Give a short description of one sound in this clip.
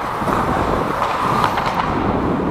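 A hockey stick clacks against a puck in an echoing rink.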